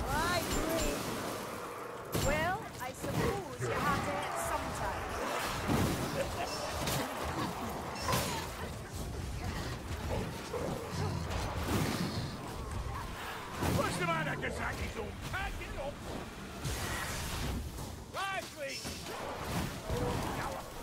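Blades clash and thud against enemies.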